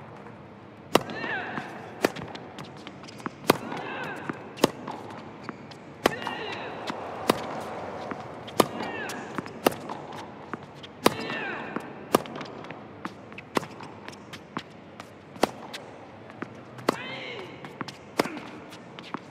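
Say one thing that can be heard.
A tennis racket hits a ball back and forth.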